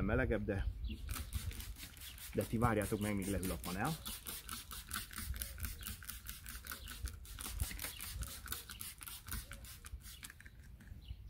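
A spray bottle hisses in quick, rapid squirts.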